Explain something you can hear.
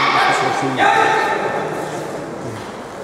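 A young man shouts loudly in a large echoing hall.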